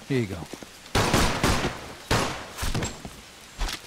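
Gunshots bang loudly.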